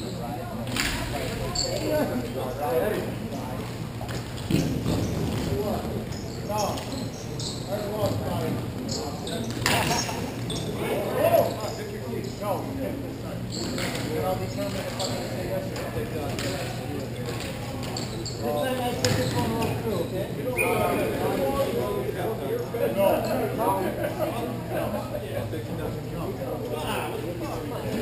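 Skate wheels roll and scrape across a hard rink floor.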